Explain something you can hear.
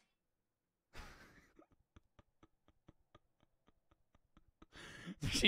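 A young man laughs in short bursts, close to a microphone.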